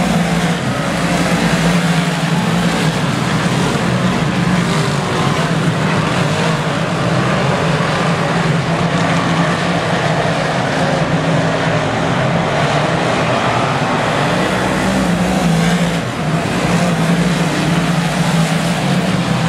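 Race car engines roar loudly and steadily.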